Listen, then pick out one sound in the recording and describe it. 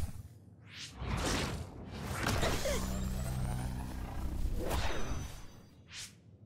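Dark energy crackles and hums with a low rumble.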